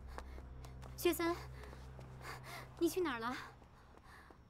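A young woman speaks softly and questioningly, close by.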